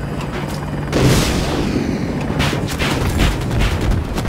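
A large explosion booms loudly.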